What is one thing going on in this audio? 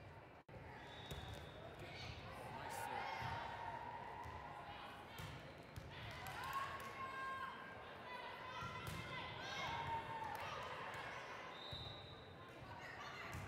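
A volleyball is bumped and hit during a rally.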